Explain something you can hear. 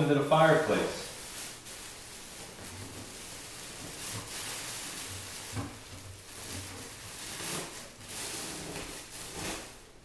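Insulation rustles as a man stuffs it into a chimney.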